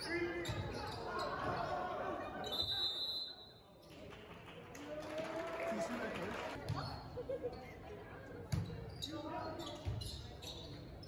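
A volleyball is struck with sharp smacks in a large echoing gym.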